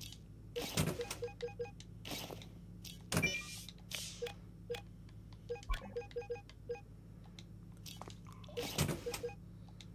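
Soft whooshes sound as game menus open and close.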